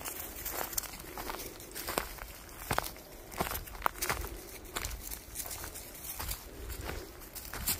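Footsteps crunch and rustle on a leafy forest floor.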